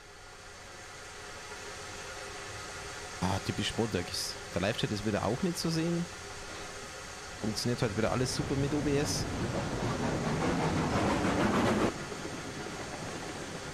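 A steam locomotive rumbles steadily along the rails.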